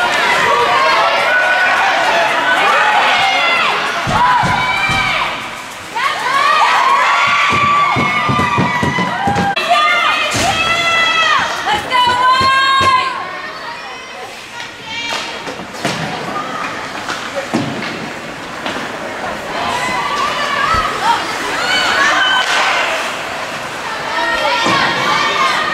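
Spectators shout and cheer loudly in an echoing arena.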